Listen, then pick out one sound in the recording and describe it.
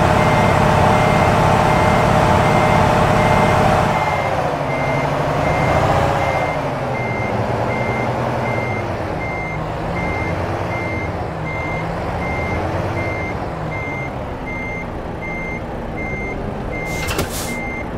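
A truck's reversing alarm beeps at a steady, even pace.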